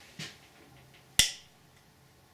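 A knife clicks against a plate.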